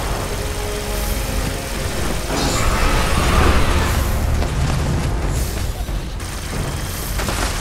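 Rapid gunfire rattles steadily.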